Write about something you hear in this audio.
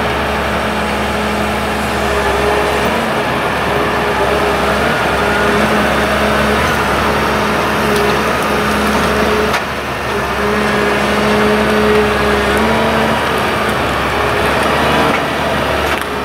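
A diesel engine of a forestry machine hums steadily nearby.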